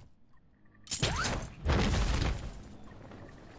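A rope whooshes as someone zips along a line.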